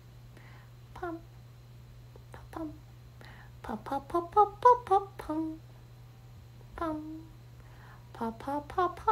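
A young woman speaks softly and casually into a nearby microphone, in short bursts with pauses.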